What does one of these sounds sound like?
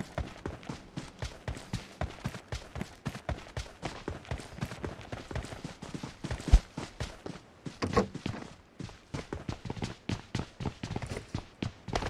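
Footsteps thud quickly and steadily on the ground.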